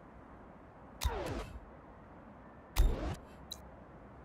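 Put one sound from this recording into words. Game interface sounds swoosh downward as menus open and close.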